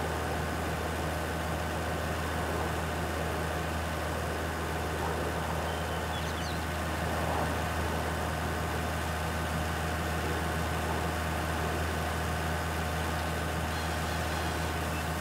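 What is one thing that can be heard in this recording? Wood chips pour from a chipper spout into a trailer.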